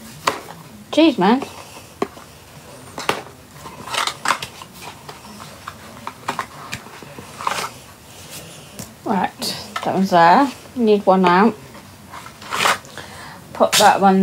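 A middle-aged woman speaks close to a phone microphone, in short bursts with pauses.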